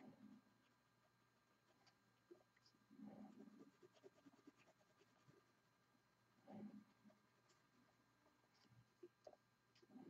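A pencil scratches softly on paper in short strokes.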